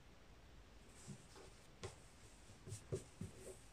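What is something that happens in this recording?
Paper rustles and creases under hands.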